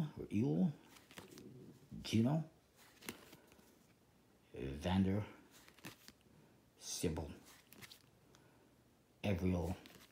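Playing cards rustle and snap as they are shuffled through by hand.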